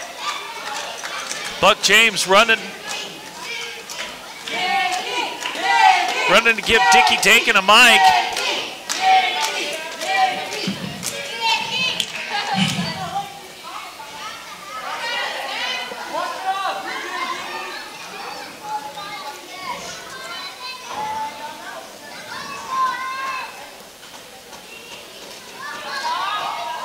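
A crowd of people shouts and chatters in an echoing hall.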